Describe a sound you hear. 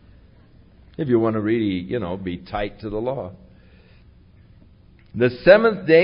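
An elderly man speaks warmly into a microphone.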